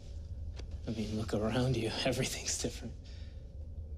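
A man speaks softly, close by.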